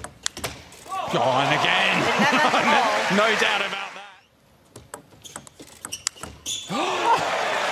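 A large crowd cheers and applauds loudly in an echoing hall.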